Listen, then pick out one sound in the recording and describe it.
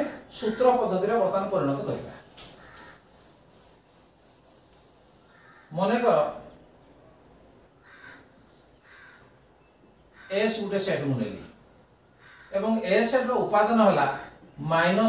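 A middle-aged man speaks calmly and clearly, as if teaching, close by.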